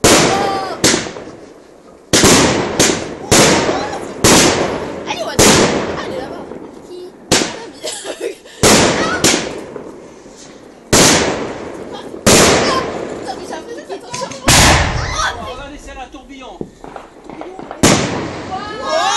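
Sparks crackle and fizz after the bursts.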